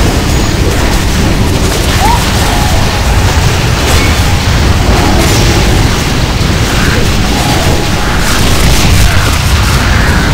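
Magic blasts crackle and whoosh in a busy fight.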